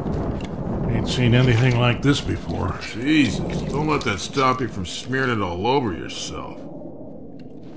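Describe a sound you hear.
An elderly man speaks in a gruff, low voice.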